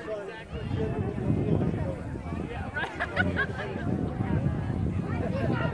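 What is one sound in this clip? A crowd of people chatters across an open field outdoors.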